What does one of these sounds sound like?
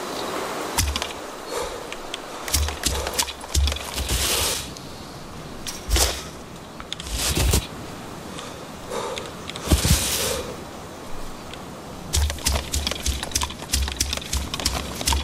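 Footsteps rustle and crunch through tall grass.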